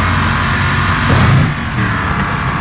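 A loud crash of metal sounds as cars collide.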